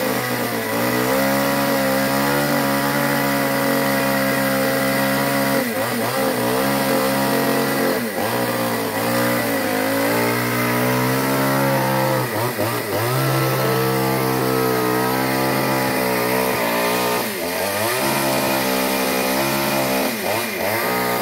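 A chainsaw engine runs steadily up in a tree, dipping and revving now and then.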